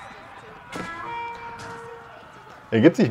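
A short game alert chime rings out.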